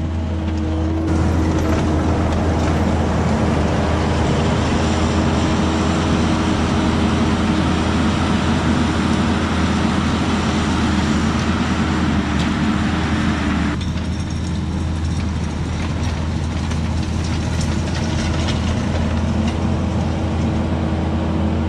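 A rake attachment scrapes and rattles over loose dirt.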